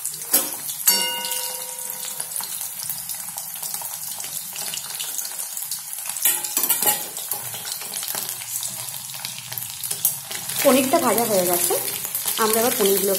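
Oil sizzles and crackles steadily in a pan.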